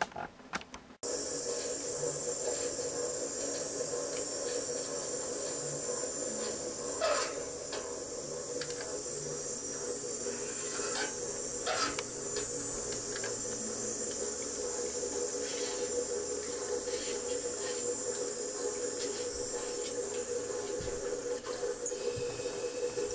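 An old washing machine hums and whirs steadily as it runs.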